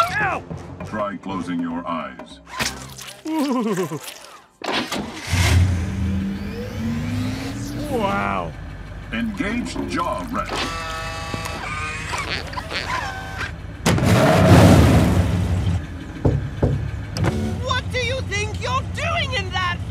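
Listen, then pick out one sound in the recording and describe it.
A man talks with animation in a cartoon voice.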